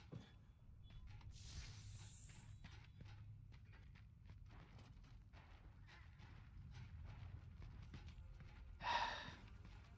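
Armoured footsteps clank over stone.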